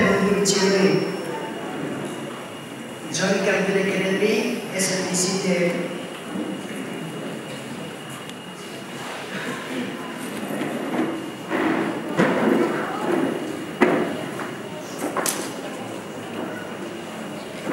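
A man speaks through a microphone and loudspeakers in a large echoing hall.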